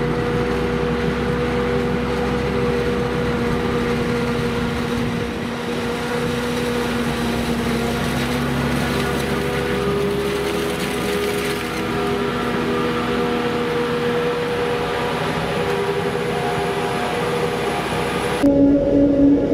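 Corn stalks crackle and clatter as a harvester chops them.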